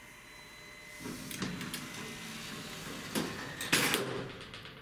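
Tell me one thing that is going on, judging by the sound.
Lift doors slide shut with a rumble.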